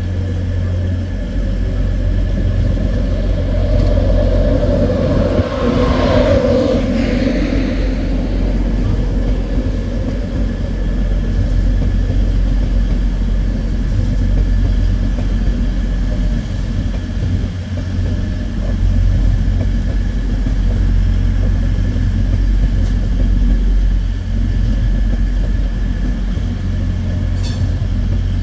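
A train rumbles past close by, wheels clattering over the rails.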